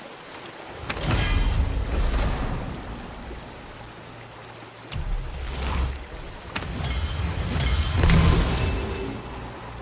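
Soft chimes ring out.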